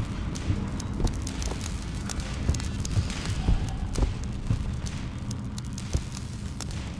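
Heavy footsteps thud at a steady walking pace.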